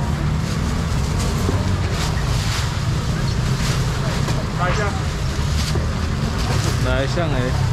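A busy crowd chatters all around.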